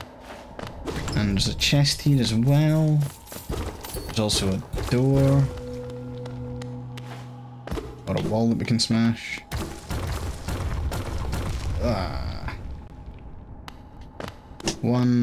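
A man speaks with animation, close to a headset microphone.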